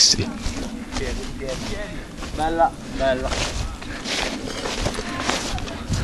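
A young man speaks casually close by, outdoors.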